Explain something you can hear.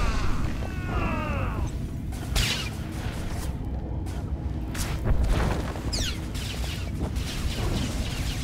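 Energy blasts zap and crackle in a fight.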